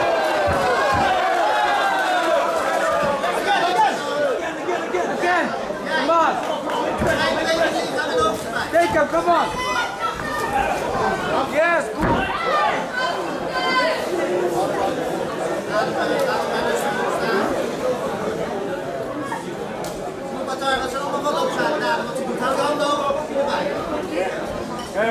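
A large crowd shouts and cheers loudly in an echoing hall.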